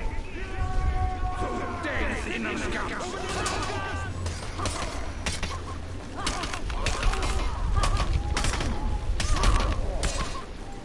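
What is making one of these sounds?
A bonfire crackles and roars.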